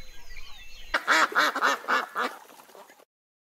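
Ducks quack.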